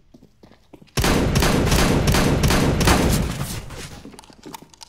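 Shotgun blasts fire rapidly in a video game.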